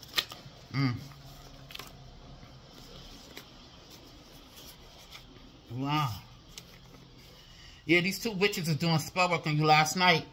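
Paper cards rustle and flick as they are shuffled by hand.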